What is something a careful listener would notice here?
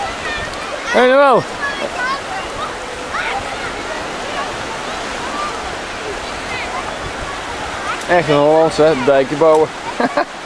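A young child shrieks loudly and playfully.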